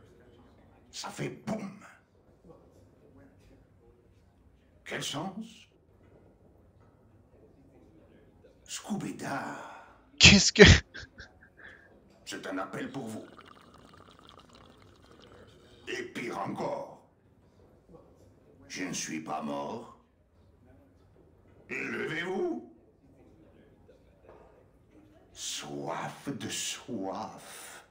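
A young man talks casually into a microphone, in short bursts.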